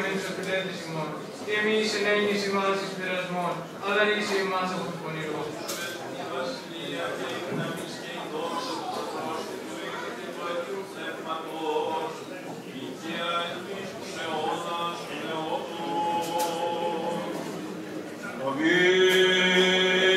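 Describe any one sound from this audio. Men chant slowly in a large echoing hall.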